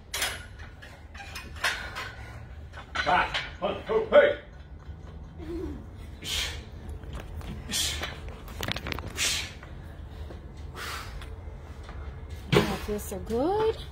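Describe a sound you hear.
A man breathes out hard with each pull-up.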